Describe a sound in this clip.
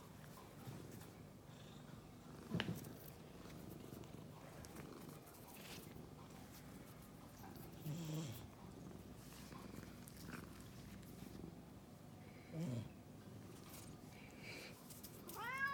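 A hand rustles softly through a cat's fur.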